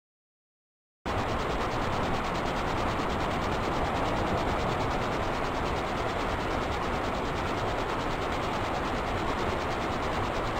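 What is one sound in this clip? A stream rushes and splashes close by.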